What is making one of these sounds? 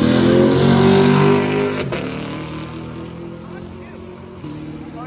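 A car engine roars loudly as a vehicle speeds past.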